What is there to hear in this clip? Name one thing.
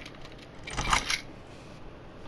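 A metal door latch clicks and the door swings open.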